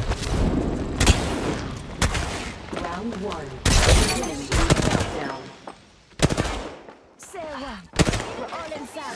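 Gunshots ring out in short, sharp bursts.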